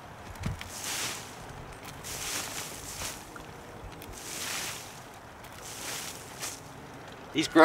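Handfuls of mulch rustle as they are tossed onto the ground.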